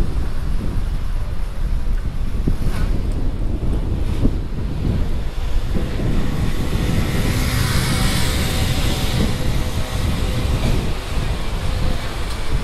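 Wind buffets a microphone outdoors with a low rumble.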